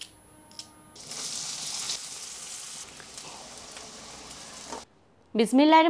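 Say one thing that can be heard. Onions sizzle in hot oil in a pan.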